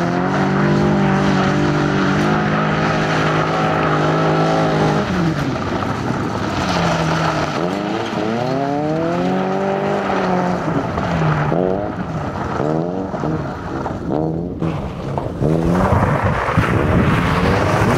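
Tyres skid and spray loose gravel.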